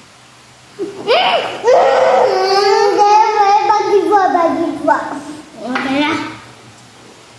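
A young boy laughs loudly close by.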